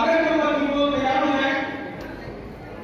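A man speaks loudly through a microphone in a large echoing hall.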